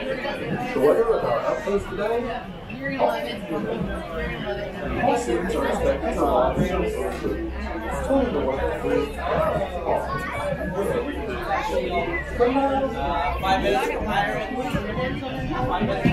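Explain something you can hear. A crowd of men and women chatter close by, their voices overlapping.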